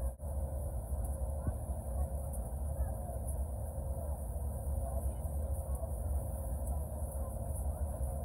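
Jet engines roar steadily from inside an airliner cabin in flight.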